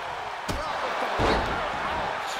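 A body slams onto a ring mat with a heavy thud.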